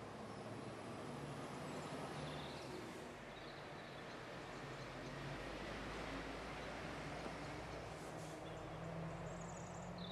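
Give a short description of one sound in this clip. A train engine hums and rumbles as it approaches along the tracks.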